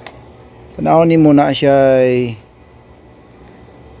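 A plastic part clicks as it is handled.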